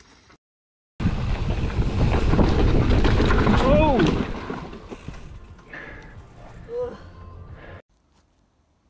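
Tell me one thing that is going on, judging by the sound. Bicycle tyres roll and rattle over a rough dirt trail.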